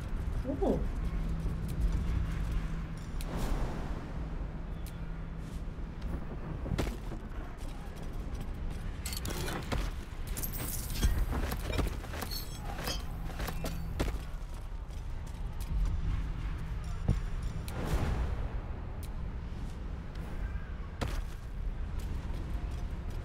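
A young woman talks casually into a nearby microphone.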